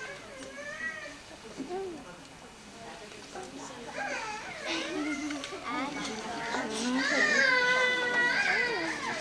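Children and women talk over one another nearby.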